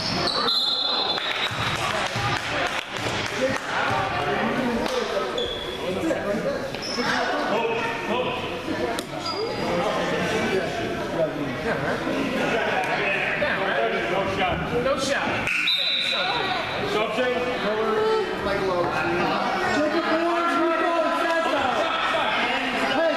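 Spectators chatter and call out throughout an echoing gym.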